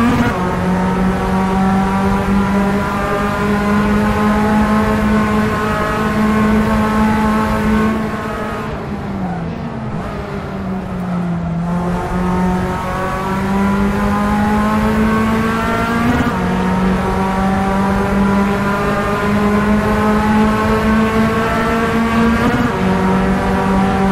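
A racing car engine roars at high revs, dropping in pitch as it slows for a corner and climbing again.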